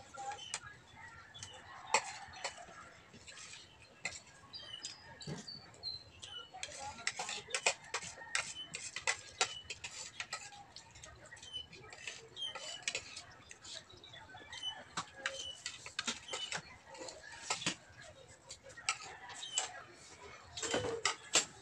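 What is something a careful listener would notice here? Spoons and forks clink and scrape against plates.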